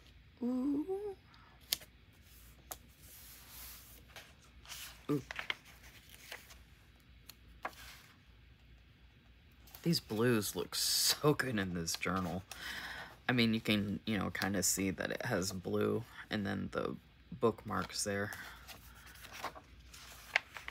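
Paper stickers rustle and crinkle as they are peeled and pressed down by hand.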